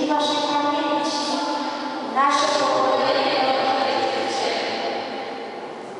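A crowd sings together in a large echoing hall.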